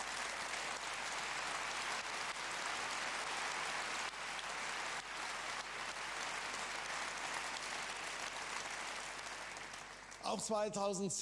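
A large audience applauds loudly in a big hall.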